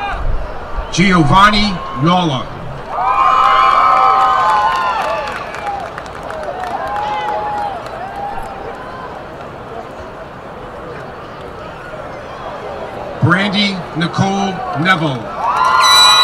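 A man announces names through a loudspeaker in a large outdoor space.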